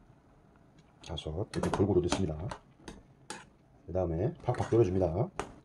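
Beans rattle and clatter as a hand stirs them in a pot.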